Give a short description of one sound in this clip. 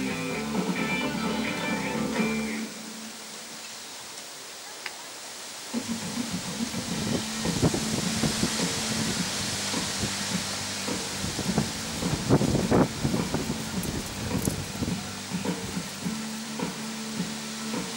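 A horse trots softly on sand.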